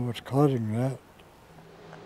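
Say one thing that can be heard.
An elderly man speaks briefly through a microphone.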